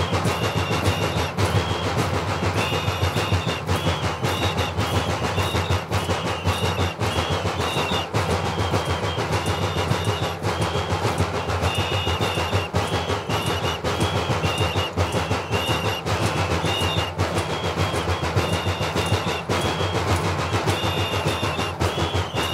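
Large drums beat loudly in a fast, steady rhythm outdoors.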